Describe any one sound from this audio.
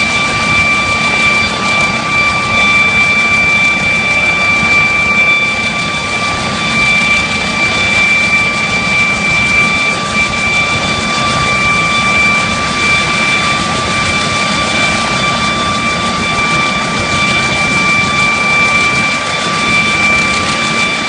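A helicopter's rotor blades thump and whoosh close by.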